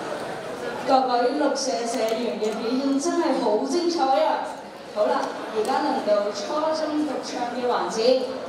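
A young man speaks through a microphone over loudspeakers.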